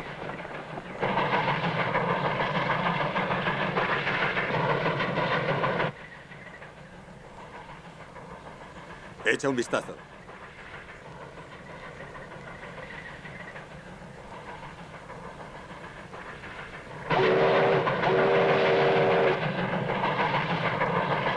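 A steam locomotive chugs loudly along the tracks.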